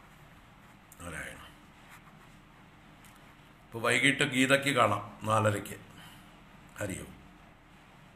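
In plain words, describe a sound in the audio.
An older man speaks calmly in short bursts close to a microphone.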